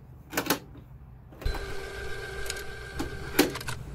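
A button on a tape player is pressed down with a clunk.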